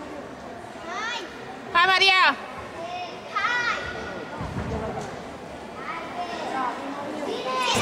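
Young girls call out and chatter in a large echoing hall.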